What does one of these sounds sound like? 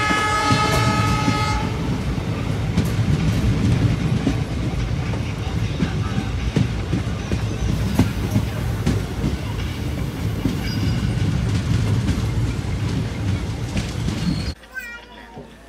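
A train rumbles and clatters along the tracks at speed.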